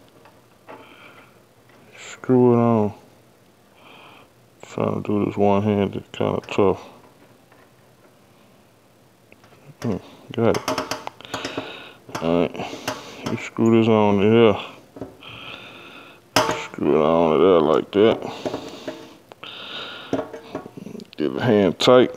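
A metal hose clamp clicks and rattles against a threaded fitting.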